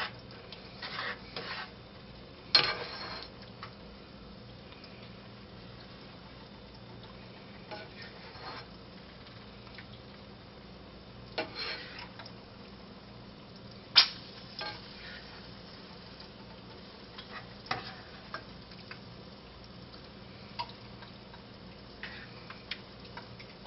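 A spatula scrapes and clinks against a frying pan.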